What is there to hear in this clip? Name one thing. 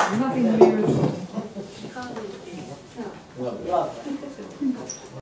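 Adults talk casually nearby.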